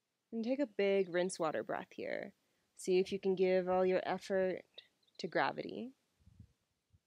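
A young woman speaks calmly and softly into a close microphone.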